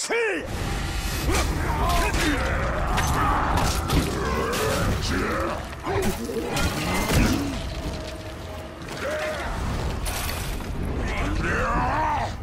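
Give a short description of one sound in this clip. Large beasts roar and growl.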